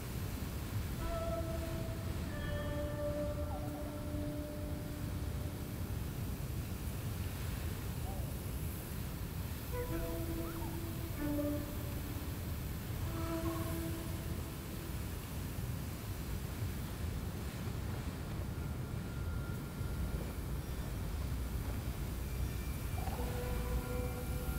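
Soft chiming notes ring out in short bursts.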